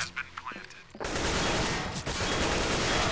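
A rifle fires a burst of shots.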